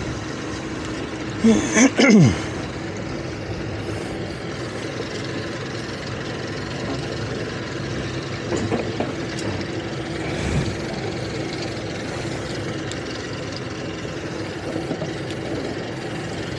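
A boat engine idles steadily.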